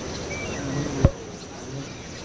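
A sharp knock sounds as a gate is placed.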